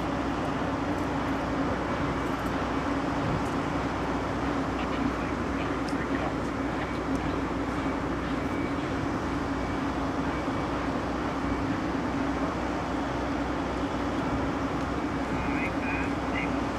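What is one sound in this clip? Passenger train cars rumble and clatter slowly along the rails.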